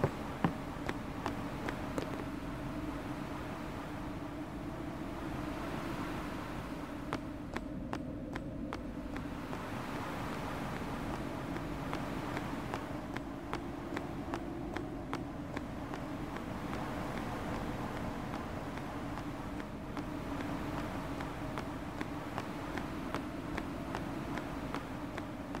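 Footsteps tap steadily on a stone walkway.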